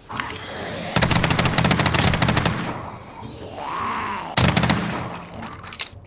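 A rifle fires in loud, rapid bursts.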